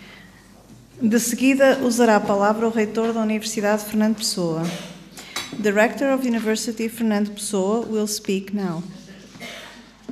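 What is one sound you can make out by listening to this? A middle-aged woman speaks calmly into a microphone over loudspeakers in an echoing hall.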